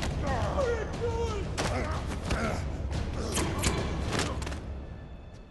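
Men grunt and struggle in a fight.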